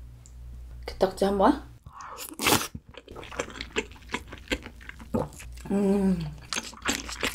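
A young woman hums with pleasure while eating, close to a microphone.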